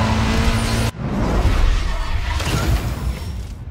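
A heavy crash booms.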